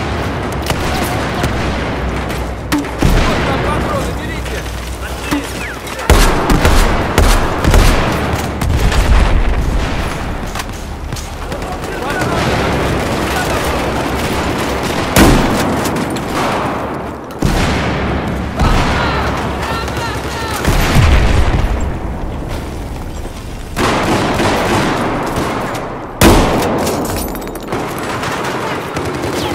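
Gunfire bursts out in loud, rapid volleys.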